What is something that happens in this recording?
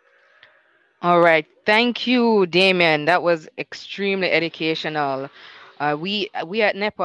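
A young woman speaks with animation through a headset microphone over an online call.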